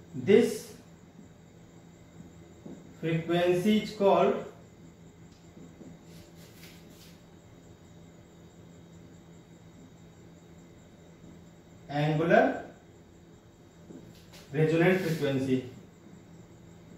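A man speaks calmly in short bursts nearby.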